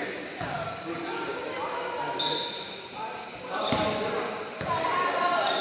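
A basketball bounces on a hard floor, echoing.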